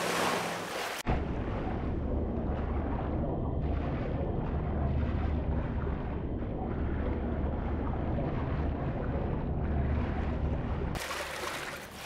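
A low, muffled underwater rumble drones steadily.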